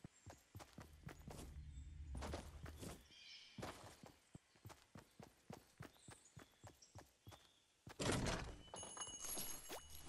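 Footsteps of a game character run quickly and evenly over hard ground.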